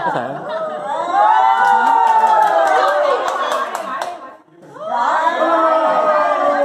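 A crowd of men, women and children cheers and shouts.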